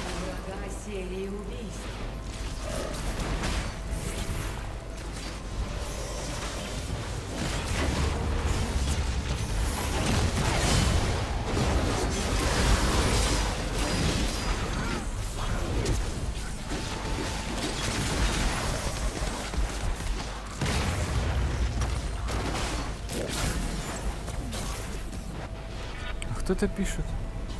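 Game sound effects clash and whoosh in quick bursts.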